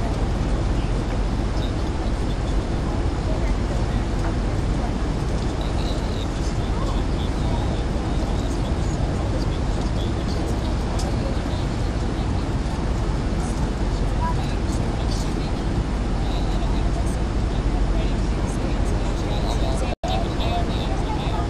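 A jet airliner's engines roar steadily in flight, heard from inside the cabin.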